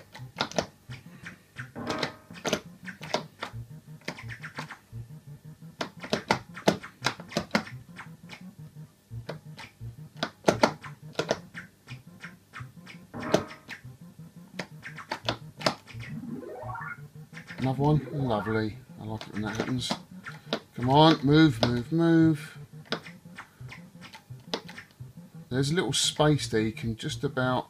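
An arcade game plays electronic beeps and blips.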